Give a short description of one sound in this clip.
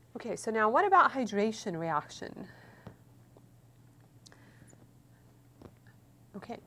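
A woman speaks clearly and calmly into a close microphone.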